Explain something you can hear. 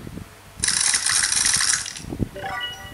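A tablet game plays a burst of crunching, shattering sound effects through a small speaker.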